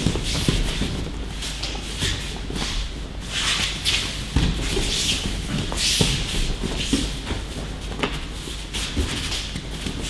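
Bodies thud onto mats as people are thrown.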